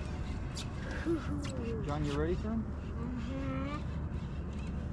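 A young child speaks excitedly nearby.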